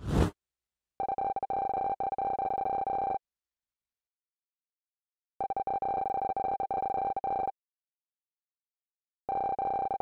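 Rapid electronic beeps chatter in bursts.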